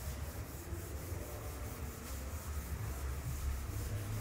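A cloth rubs across a chalkboard.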